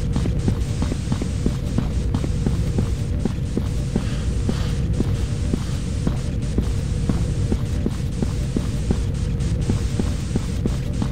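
Footsteps thud at a brisk, steady walking pace.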